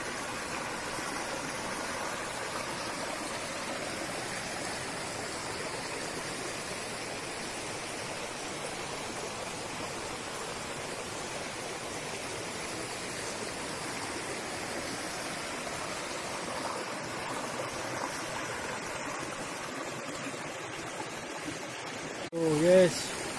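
A shallow stream trickles and babbles over rocks.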